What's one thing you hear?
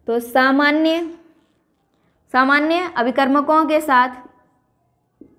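A young woman speaks clearly and steadily, close by.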